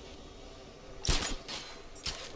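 A single sharp shot cracks.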